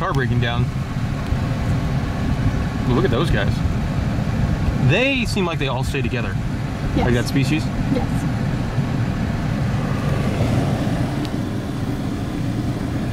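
A car engine hums steadily close by.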